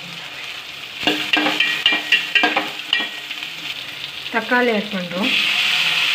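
Onions sizzle in a hot pan.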